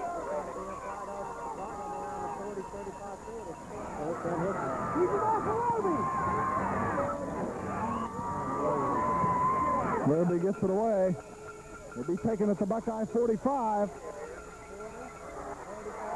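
A crowd cheers and shouts outdoors, swelling as a play unfolds.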